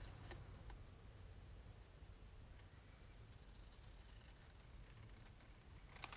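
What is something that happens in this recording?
Scissors snip through card.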